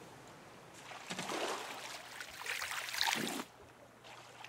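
A hook splashes into the sea.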